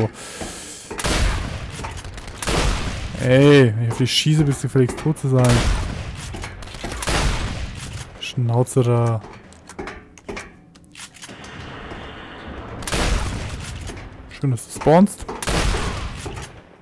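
A shotgun fires loud booming blasts.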